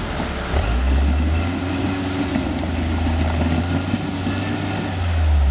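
Tyres grind and scrape over rock.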